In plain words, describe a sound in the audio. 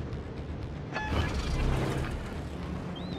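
Heavy naval guns fire with a loud, rolling boom.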